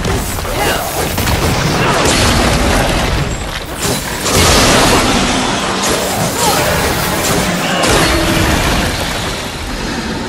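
Blades clash and slash in a fierce fight.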